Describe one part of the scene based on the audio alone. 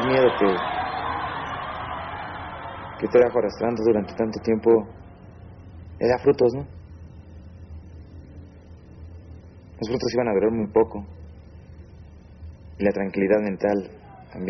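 A young man speaks calmly and close up, in short phrases with pauses.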